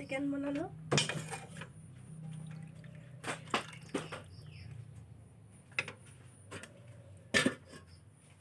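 A metal ladle scrapes and clinks against a cooking pot.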